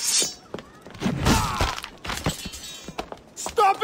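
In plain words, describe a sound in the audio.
Heavy punches land in a scuffle.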